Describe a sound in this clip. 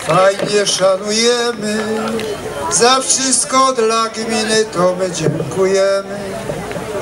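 A middle-aged man speaks with animation into a microphone over loudspeakers outdoors.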